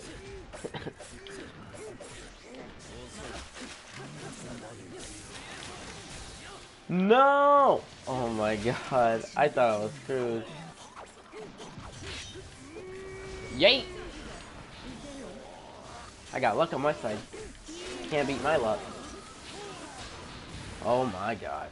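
Punches and energy blasts crash and whoosh in a fast fight.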